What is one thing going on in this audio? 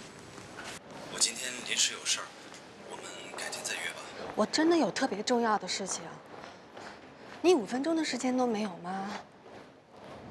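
A young woman talks on a phone, pleading.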